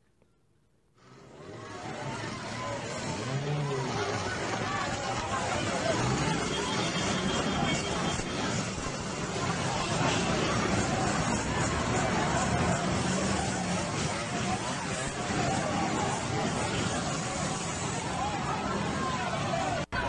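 A crowd of men and women shout and cheer excitedly outdoors.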